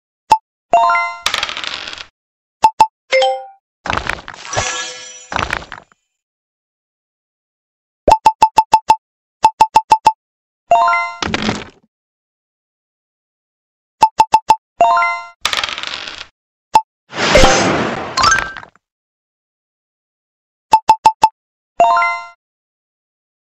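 Short game chimes ring out.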